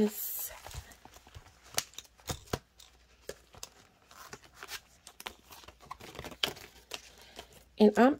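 Plastic sheets crackle as a binder pocket is handled.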